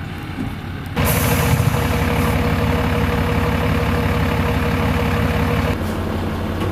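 A large truck's diesel engine idles with a steady rumble.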